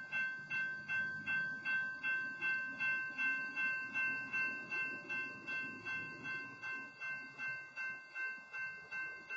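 A freight train rumbles past on the tracks.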